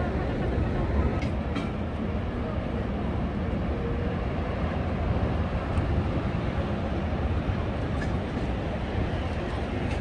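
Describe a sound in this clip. Waves wash onto a beach nearby.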